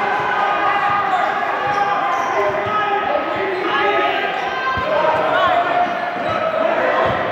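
Sneakers squeak sharply on a hard court in a large echoing gym.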